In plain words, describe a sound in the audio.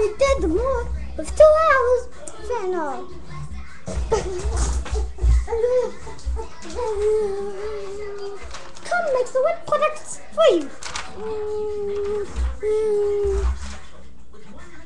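A young boy talks and sings with animation close by.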